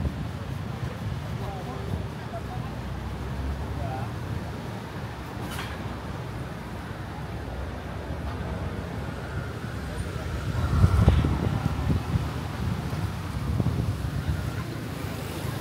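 Wind gusts and rumbles steadily outdoors.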